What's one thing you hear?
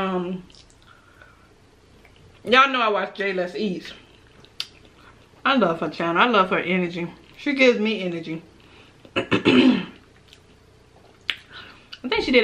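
A woman chews and smacks her lips softly.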